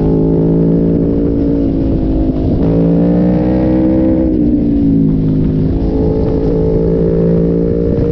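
A motorcycle engine hums close by, its pitch rising and falling through the bends.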